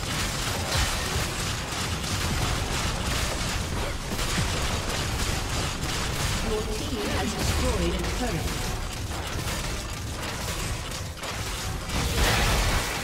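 Game spells and attacks crackle and boom in a dense, busy clash.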